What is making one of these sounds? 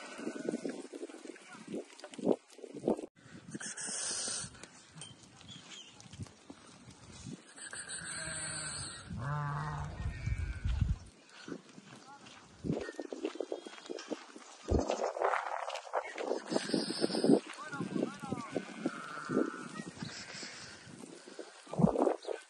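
A flock of sheep bleats loudly and often, close by.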